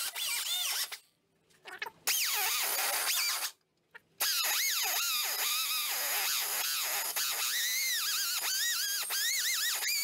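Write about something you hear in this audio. A high-pitched angle grinder whines and grinds against metal, its pitch dipping and rising as it bites.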